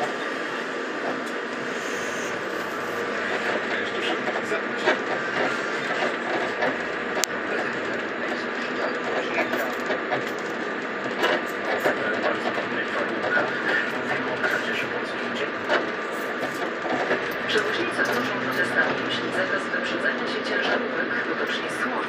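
Tyres roll over a rough road surface.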